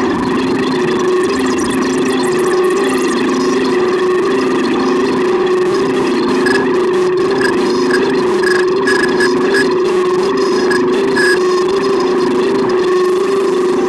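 A modular synthesizer plays a pulsing electronic sequence of tones.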